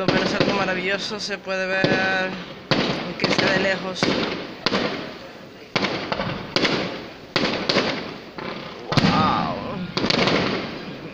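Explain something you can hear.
Fireworks shells burst in the sky with sharp booms that echo and fade.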